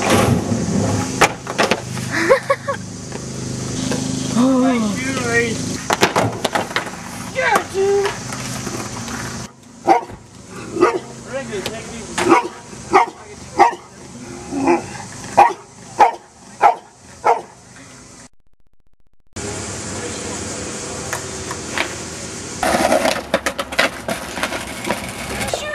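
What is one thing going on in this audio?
A skateboard rolls and clatters on concrete.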